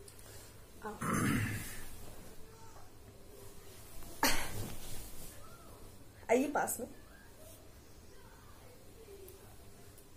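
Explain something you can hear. Cloth rustles as a scarf is handled.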